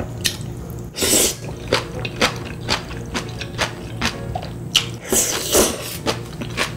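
A young woman loudly slurps noodles up close.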